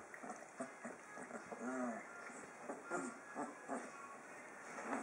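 A puppy whimpers and squeals nearby.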